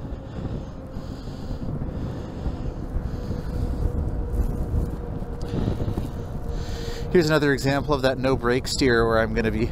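Wind rushes and rumbles steadily past a fast-moving rider.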